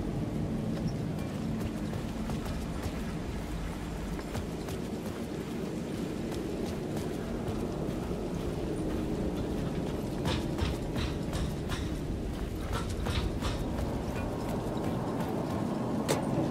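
Footsteps tread on a hard floor and metal stairs.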